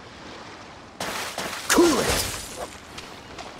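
Ice shatters with a bright burst.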